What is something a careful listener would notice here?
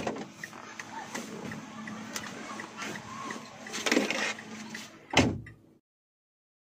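Clothing and a leather seat rustle as a man climbs out of a car.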